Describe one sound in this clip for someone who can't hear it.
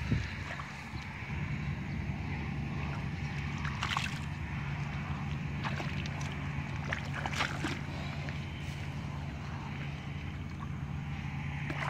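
Hands splash and slosh in muddy water.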